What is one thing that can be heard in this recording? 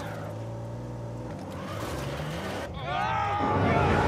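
A jeep crashes and tumbles against rock.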